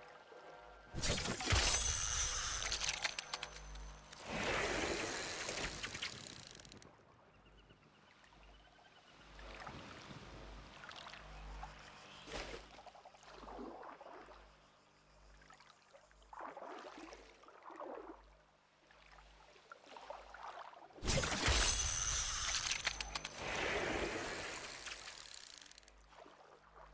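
A spear splashes hard into water.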